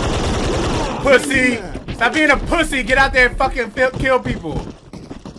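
A young man talks excitedly into a close microphone.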